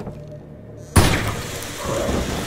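A flare bursts alight and hisses loudly.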